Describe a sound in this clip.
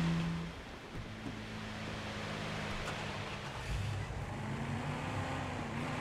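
A car engine hums steadily as the car drives along a street.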